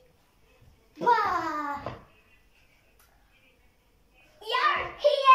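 A second young girl speaks excitedly and exclaims.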